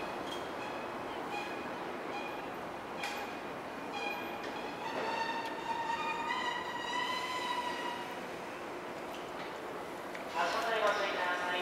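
Train wheels squeal on the curved rails.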